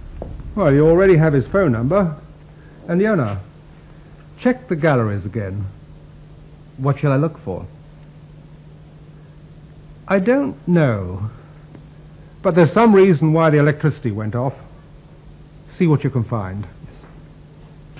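A middle-aged man talks calmly and clearly nearby.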